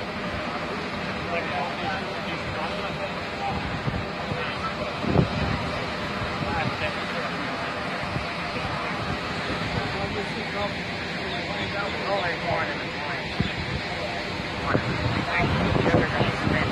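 Men talk nearby in calm voices.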